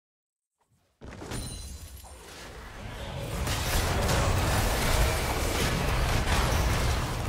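Game spells crash and whoosh in a noisy fight.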